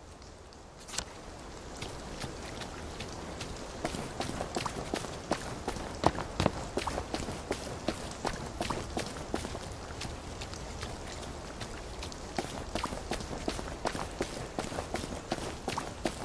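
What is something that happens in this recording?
Footsteps crunch steadily along a dirt path.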